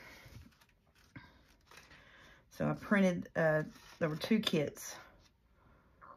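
Sheets of paper rustle softly as pages are lifted and turned.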